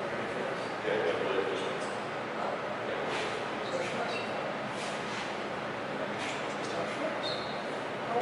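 A second man talks calmly.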